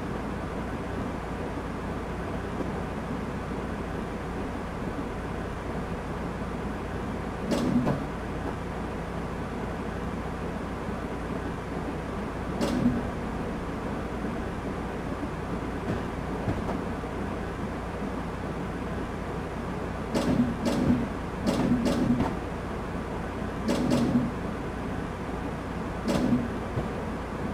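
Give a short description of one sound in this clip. A train's engine rumbles steadily.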